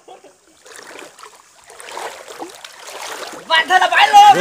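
Water splashes as a man wades through a river.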